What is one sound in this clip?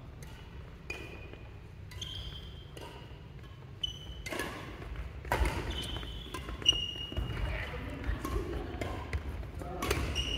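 Shoes squeak on a sports hall floor.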